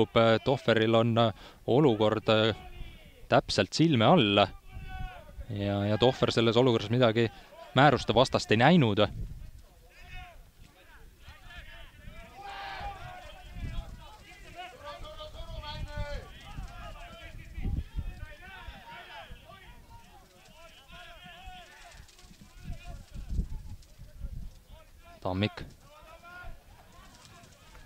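Men shout to each other across an open field, heard from a distance.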